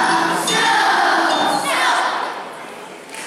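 A choir of young children sings loudly together.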